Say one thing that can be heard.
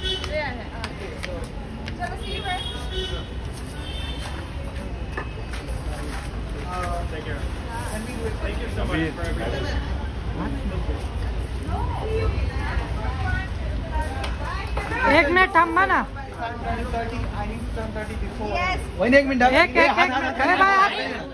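A group of young men and women chat close by.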